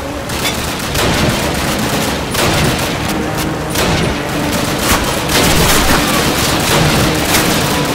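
Rifle shots crack sharply.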